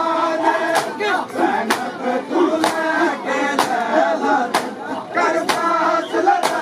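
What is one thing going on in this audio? A crowd of men chants loudly close by.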